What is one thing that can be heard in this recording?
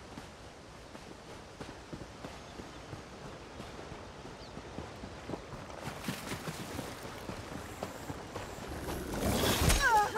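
Footsteps patter softly on grass and stone.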